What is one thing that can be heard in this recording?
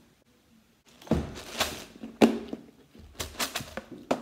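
Dried beans rattle and pour into a plastic container.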